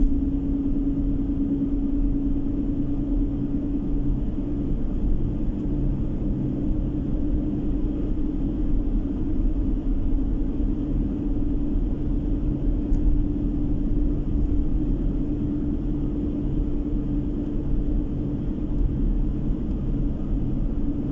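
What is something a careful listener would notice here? Tyres roll on asphalt with a low, steady rumble.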